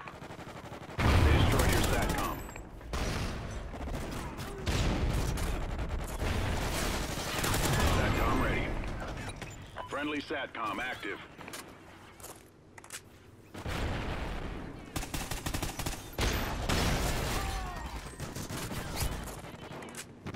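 A rifle fires rapid bursts of gunshots.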